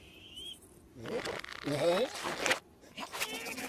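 A cartoon creature lets out a loud, wild shriek.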